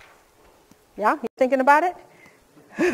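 A middle-aged woman speaks with animation.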